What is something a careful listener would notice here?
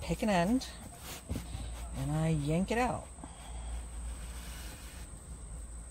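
Satin ribbons rustle softly in hands.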